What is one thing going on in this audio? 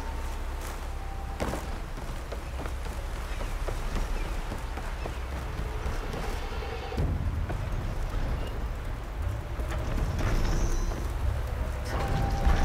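Footsteps run quickly over creaking wooden planks and soft ground.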